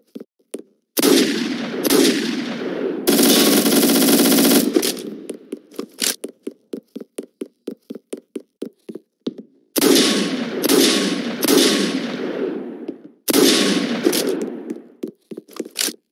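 A rifle fires rapid bursts of loud gunshots.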